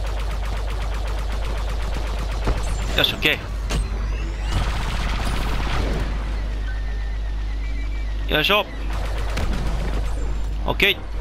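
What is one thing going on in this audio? A starfighter engine roars steadily.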